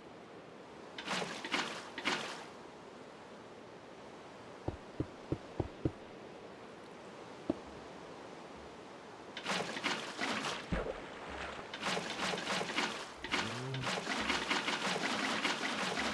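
Water splashes and gushes from a bucket.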